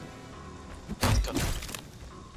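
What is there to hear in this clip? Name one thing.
Heavy blows smash through a wooden door.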